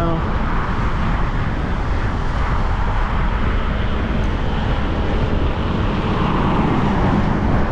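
Vehicles drive past overhead on a bridge.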